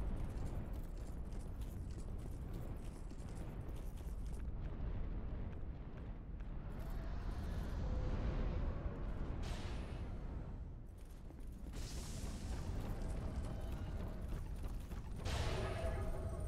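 Armoured footsteps crunch on gravel.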